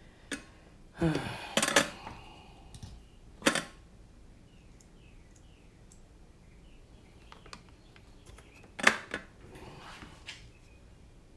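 A man speaks quietly and briefly close by.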